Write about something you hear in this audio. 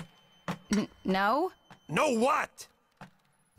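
A woman speaks with surprise.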